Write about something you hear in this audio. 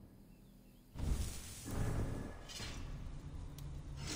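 A menu sound whooshes as the view switches.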